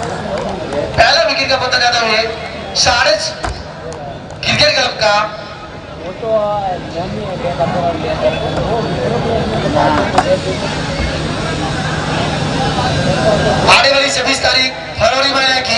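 Young men shout loudly outdoors.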